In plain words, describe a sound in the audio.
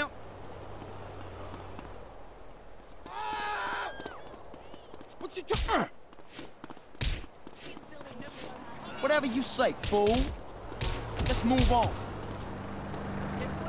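Footsteps slap quickly on pavement as someone runs.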